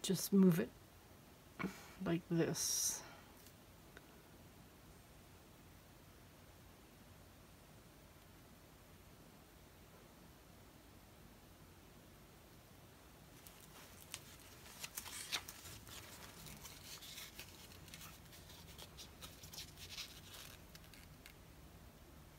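A metal scraper scrapes wet paint across a plastic surface.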